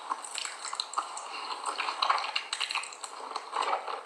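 A woman chews a mouthful of cornstarch close to a microphone.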